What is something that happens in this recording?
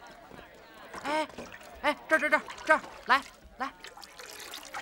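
Young boys call out eagerly, close by.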